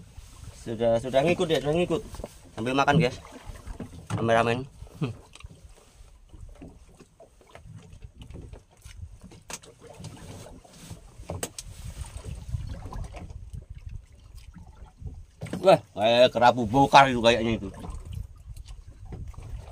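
Waves lap against a wooden boat.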